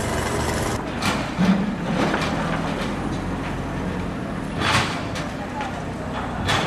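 A backhoe loader's diesel engine runs.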